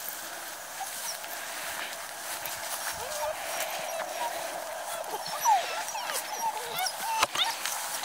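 Puppies growl playfully.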